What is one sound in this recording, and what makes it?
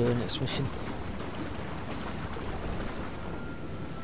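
Water splashes as a swimmer paddles through a river.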